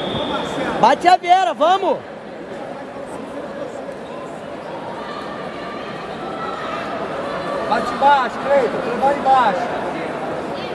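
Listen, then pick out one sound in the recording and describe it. A man shouts loudly nearby in short bursts.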